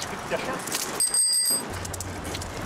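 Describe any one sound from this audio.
A bicycle bell rings briefly.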